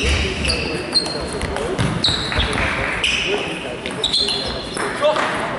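A table tennis ball clicks back and forth off paddles and the table in a quick rally.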